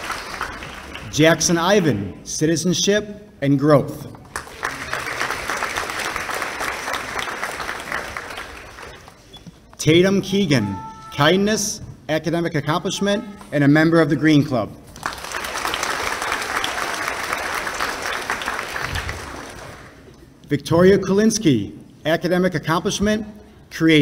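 A man speaks through a microphone in a large hall, reading out calmly.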